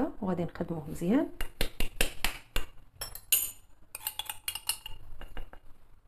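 Sugar pours from a glass into a ceramic bowl.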